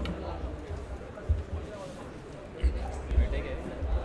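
A carrom striker clicks sharply against the pieces on a wooden board.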